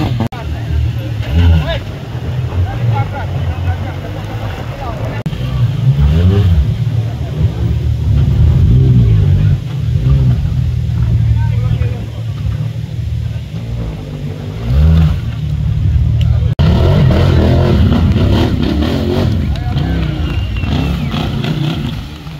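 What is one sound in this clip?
Mud splashes and slurps under spinning tyres.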